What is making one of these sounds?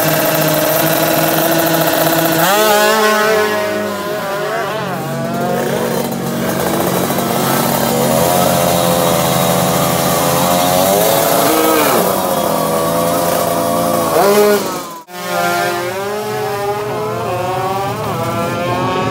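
A racing motorcycle engine revs hard and roars off into the distance, rising and falling in pitch.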